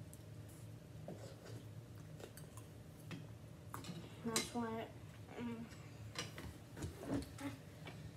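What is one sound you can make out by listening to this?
Spoons and chopsticks clink against bowls.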